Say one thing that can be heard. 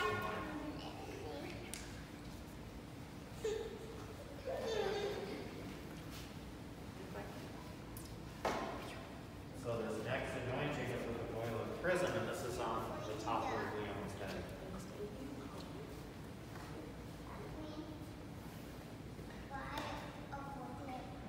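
An elderly man speaks calmly, reading out in a slightly echoing room.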